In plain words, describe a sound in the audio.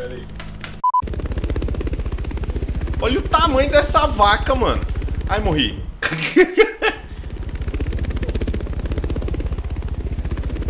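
A helicopter's rotor thumps in a fast, steady beat.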